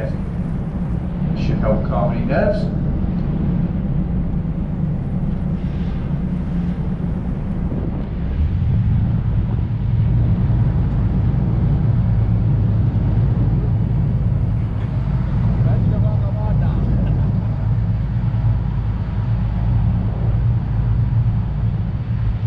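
A boat's engine rumbles steadily.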